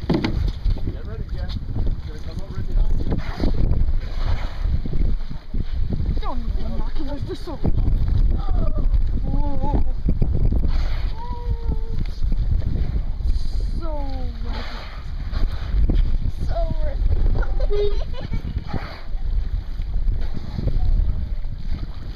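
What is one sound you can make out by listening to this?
Wind blusters steadily across the microphone outdoors on open water.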